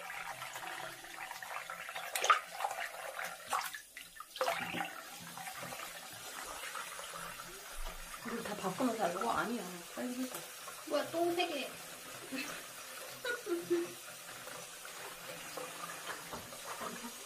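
Water runs from a tap and splashes into a basin.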